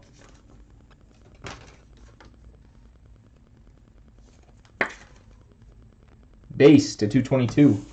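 Plastic card cases click and clatter against each other in hands.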